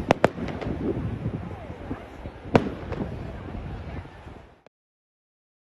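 Firework rockets hiss as they shoot upward.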